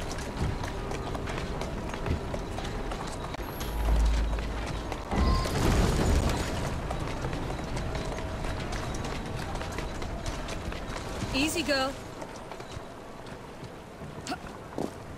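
Wooden wagon wheels rattle over cobblestones.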